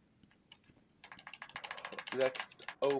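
A metal grate rattles and scrapes as it is pried open.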